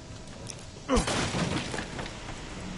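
A wooden crate breaks apart with a loud crack and splintering.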